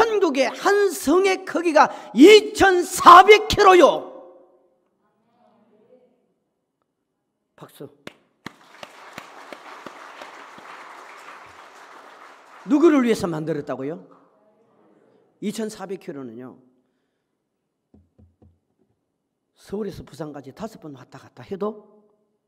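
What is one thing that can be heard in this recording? A middle-aged man preaches forcefully through a microphone in a large echoing hall.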